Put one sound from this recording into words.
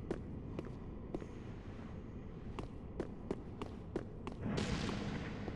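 Armoured footsteps clank on a stone floor.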